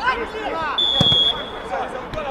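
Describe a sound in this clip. A whistle blows once, sharply.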